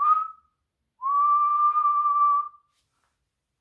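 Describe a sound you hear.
A man hums a long steady note.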